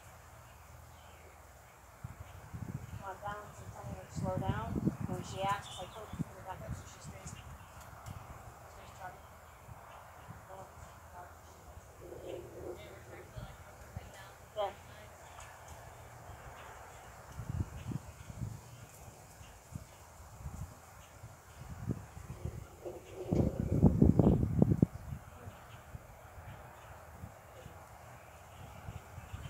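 A horse's hooves thud softly on grass as it trots.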